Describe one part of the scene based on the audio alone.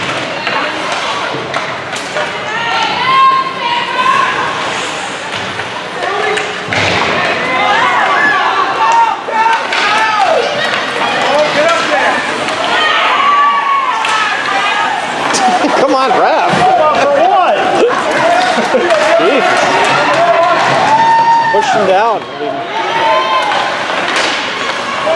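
Skate blades scrape across the ice.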